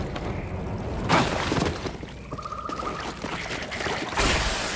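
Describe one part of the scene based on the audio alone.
Water splashes underfoot as someone wades.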